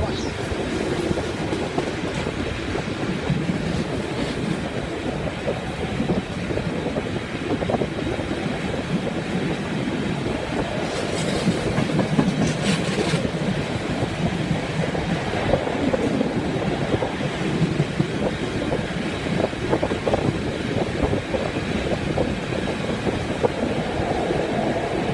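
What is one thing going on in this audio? Train wheels clatter over rail joints and points.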